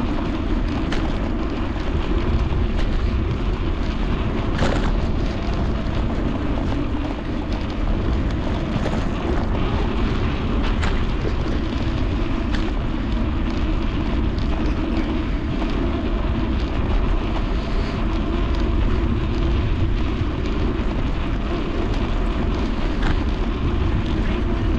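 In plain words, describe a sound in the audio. Bicycle tyres roll over paving with occasional rattles and knocks.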